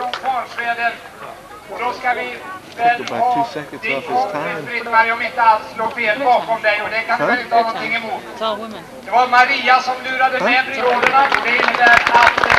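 A man speaks through a loudspeaker with animation.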